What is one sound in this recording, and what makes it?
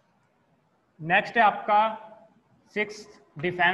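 A young man speaks loudly and clearly.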